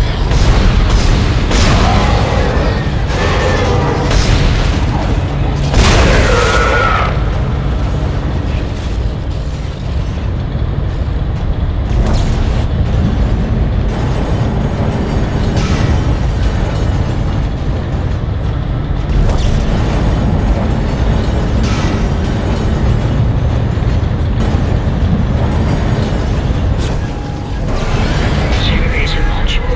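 A low mechanical rumble drones steadily.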